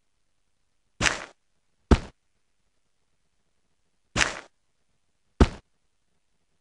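Coins clink in short bursts.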